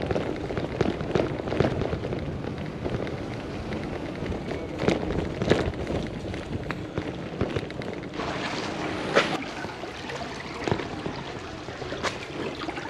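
Wind buffets outdoors with a low, steady rumble.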